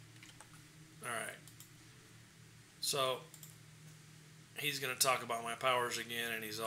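A middle-aged man speaks calmly and close to a microphone.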